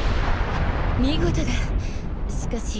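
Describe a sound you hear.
A woman speaks in a calm, pleased voice.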